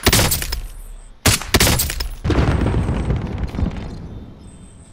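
A rifle fires several loud shots that echo and fade away.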